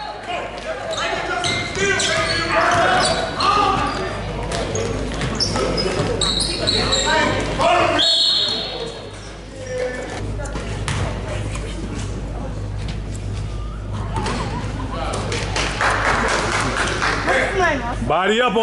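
A crowd of spectators chatters and cheers, echoing in a large hall.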